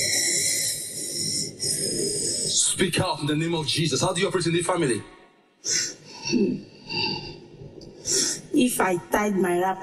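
Another woman answers emotionally into a microphone.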